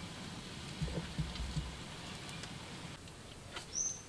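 A small wood fire crackles under a pot.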